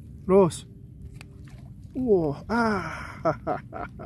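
A fish splashes as it is pulled from the water.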